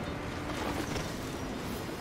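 A truck's wheels thump over railway tracks.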